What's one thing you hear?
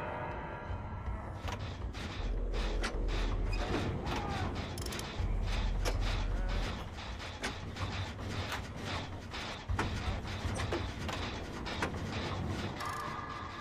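Metal parts clink and rattle in quick, uneven taps.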